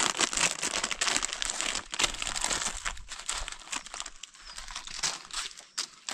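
Plastic snack packets crinkle in a person's hands.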